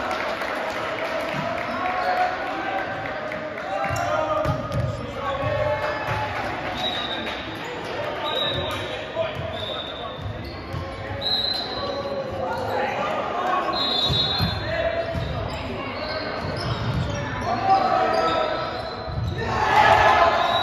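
A volleyball thuds as it is struck.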